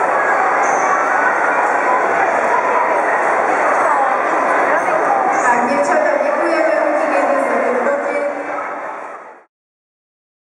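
Many young girls chatter and talk at once in a large echoing hall.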